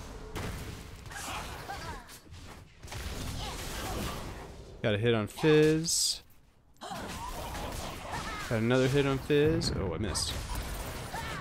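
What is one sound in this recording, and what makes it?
Magic blasts whoosh and crackle in a video game battle.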